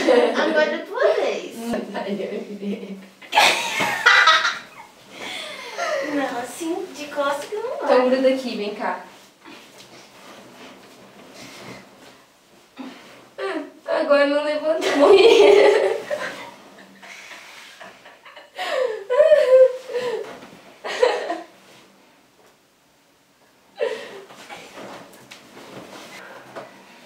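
Bodies thump and rustle on bedding.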